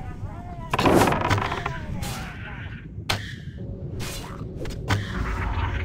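Weapon blows thud against a creature.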